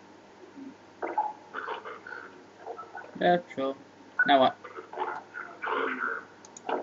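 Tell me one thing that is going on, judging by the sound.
A man gives stern orders through a muffled, crackling mask radio.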